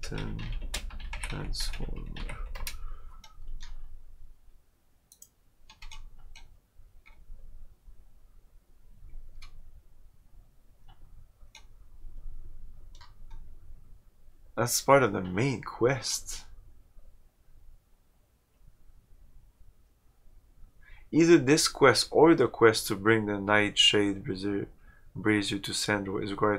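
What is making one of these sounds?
A man speaks calmly and close to a microphone, pausing now and then.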